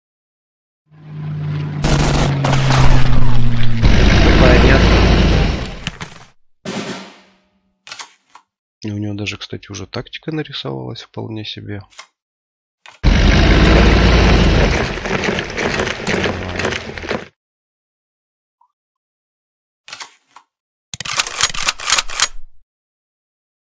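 Game sound effects boom and clatter in short bursts.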